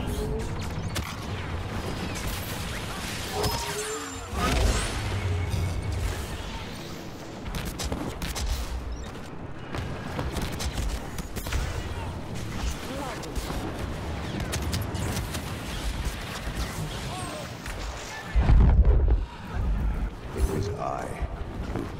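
Blasters fire in quick bursts.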